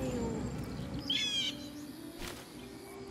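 A bird chirps and squawks close by.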